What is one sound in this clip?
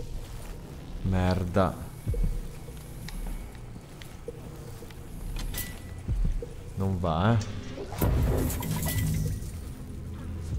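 A young man talks with animation into a nearby microphone.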